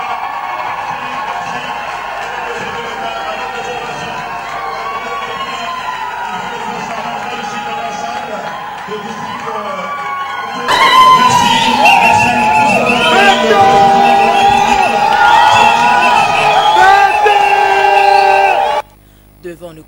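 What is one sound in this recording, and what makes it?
A large crowd cheers and sings loudly.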